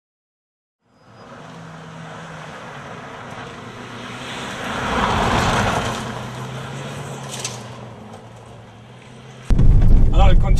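A car engine roars as the car speeds past on gravel.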